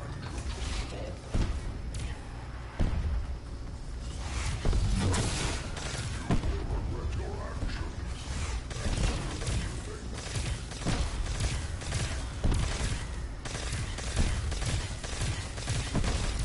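Electric crackling and zapping sounds ring out.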